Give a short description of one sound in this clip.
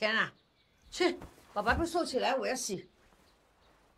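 An elderly woman speaks firmly nearby.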